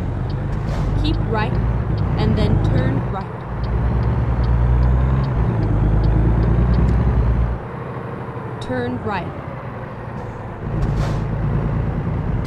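A truck engine rumbles low and steady, easing off and picking up again.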